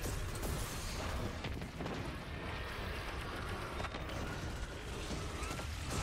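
Energy blasts boom and hiss.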